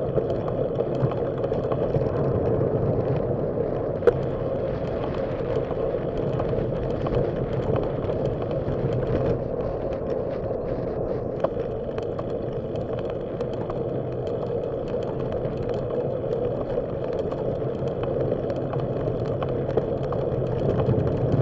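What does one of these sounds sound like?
Bicycle tyres roll and hum along pavement.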